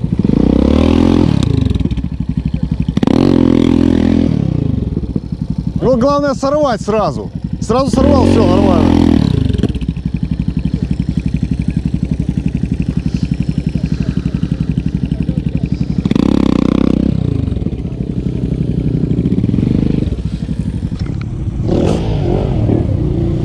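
A motorcycle engine idles and putters nearby.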